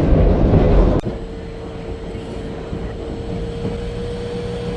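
An electric locomotive hums steadily.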